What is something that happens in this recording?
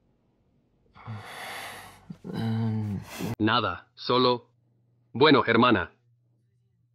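A young man answers hesitantly, speaking in short bursts.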